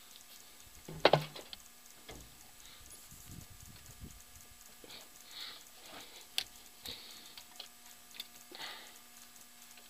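Metal tools clink and tap against an engine.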